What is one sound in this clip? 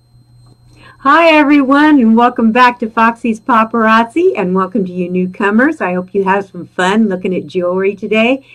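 An older woman speaks cheerfully and with animation close to a microphone.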